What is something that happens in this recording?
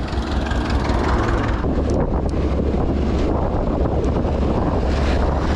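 A tractor engine rumbles close ahead.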